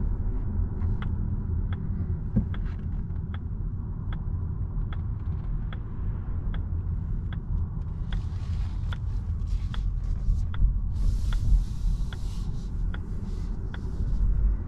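A turn signal ticks steadily inside the car.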